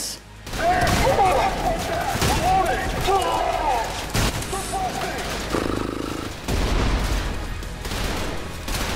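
Gunshots ring out in bursts.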